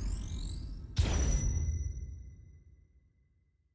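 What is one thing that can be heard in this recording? A bright chime rings out and fades.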